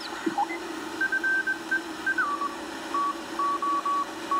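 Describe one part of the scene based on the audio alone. Morse code beeps come in short bursts from a radio receiver.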